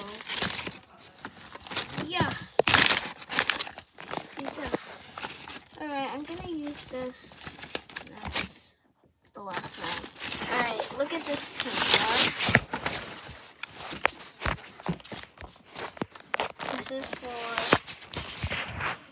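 Plastic toys rustle and clatter as they are handled.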